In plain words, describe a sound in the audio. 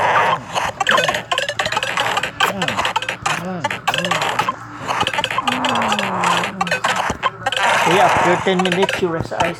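Quick electronic blips and chimes ring out from a video game in rapid succession.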